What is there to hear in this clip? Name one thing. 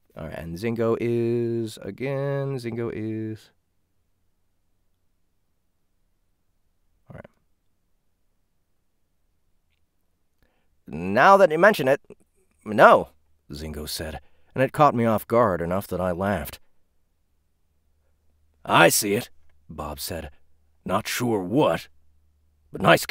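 A young man speaks calmly and close into a microphone, with pauses.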